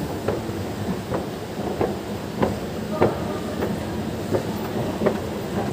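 Escalator steps clack at a regular pace.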